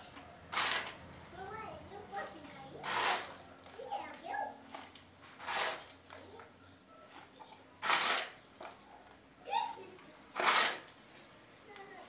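A plastic scoop scrapes up dry soil and pours it out in short rustling bursts.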